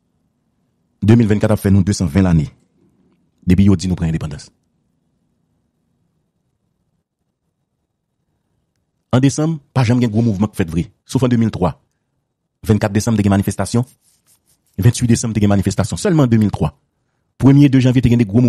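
A man speaks with animation over a phone line.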